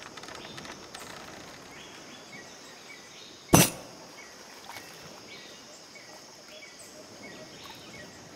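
Gentle waves wash onto a sandy shore.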